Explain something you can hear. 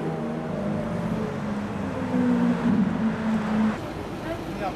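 A sports car engine roars loudly as the car drives past.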